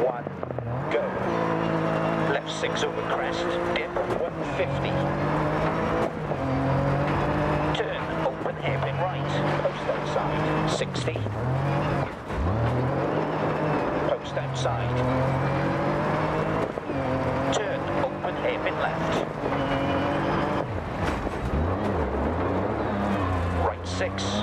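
Gravel crackles and pops under the tyres.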